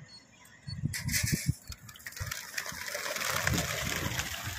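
Pigeons flap their wings as they take off.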